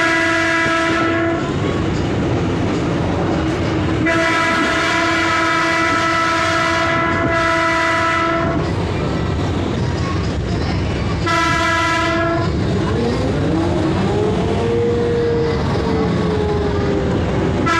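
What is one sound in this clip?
A diesel railcar's engine drones as the train runs along.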